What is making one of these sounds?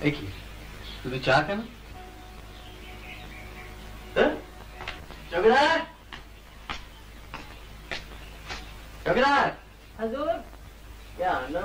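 A young man calls out in a long, wavering voice.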